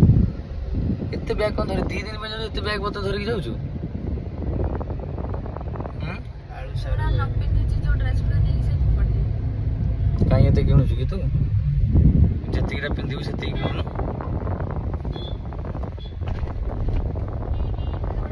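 A car engine rumbles low and steady inside the cabin.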